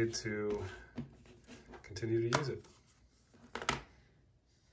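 A plastic phone case clicks and taps as it is handled.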